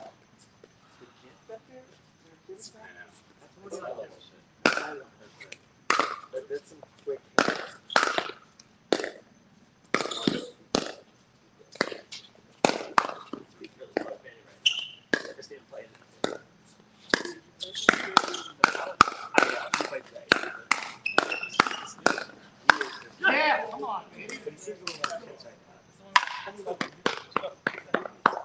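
Paddles pop sharply against a plastic ball, back and forth outdoors.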